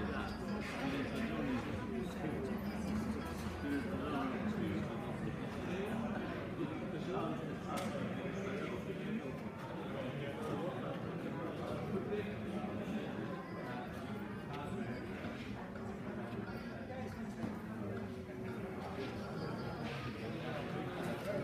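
Several men chat nearby in a large echoing hall.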